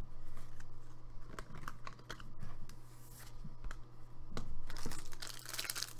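Trading cards click and rustle as hands shuffle through them.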